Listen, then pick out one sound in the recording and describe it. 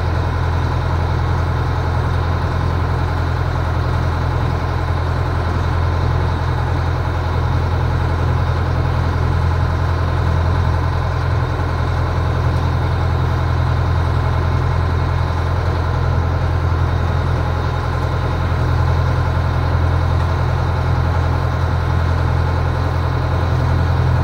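A boat engine drones steadily at a low pitch.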